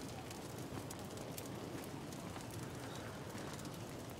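Footsteps crunch softly on gravel.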